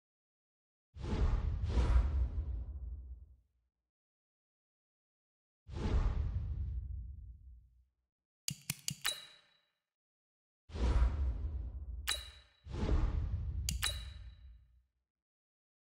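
Low whooshing sweeps sound as menus switch.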